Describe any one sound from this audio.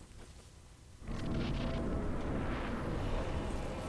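A deep rushing whoosh sweeps through a wall of mist.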